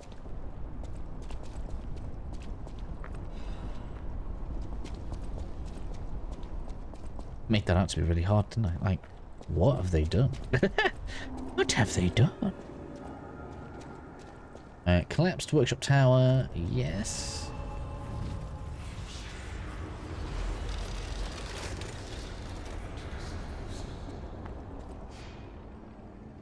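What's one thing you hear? Footsteps tread quickly on stone.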